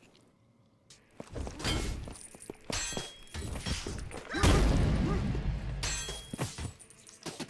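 Magic blasts crackle and boom loudly.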